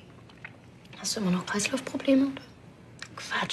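A young woman speaks calmly and firmly nearby.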